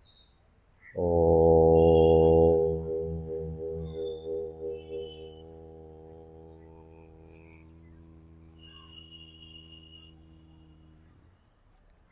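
A young man chants a long, low, steady hum that slowly fades away.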